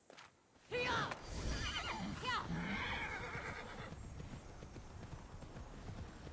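A horse gallops over grass with thudding hooves.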